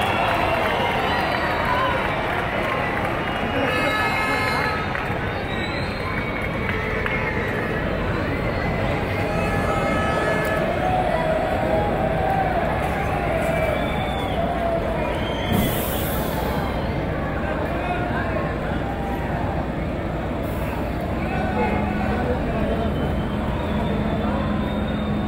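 A large crowd cheers, chants and whistles outdoors.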